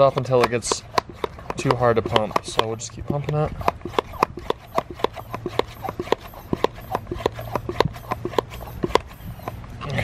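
A hand pump sprayer clicks and squeaks in a steady rhythm as it is pumped.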